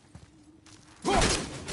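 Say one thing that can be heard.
An axe swings and strikes with a loud crash.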